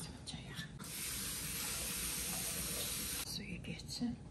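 Water runs steadily from a tap.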